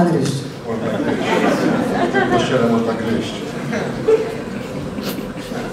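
A young woman speaks briefly through a microphone.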